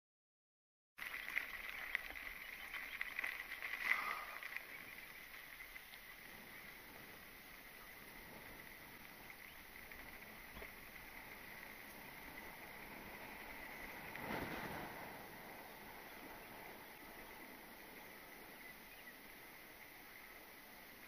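Mountain bike tyres roll over dry dirt and grass.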